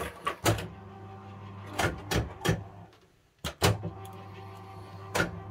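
A fruit machine hums steadily.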